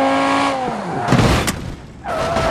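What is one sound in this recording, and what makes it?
Metal crunches and scrapes in a loud crash.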